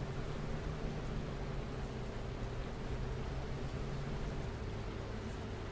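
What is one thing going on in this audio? Rain patters on a windshield.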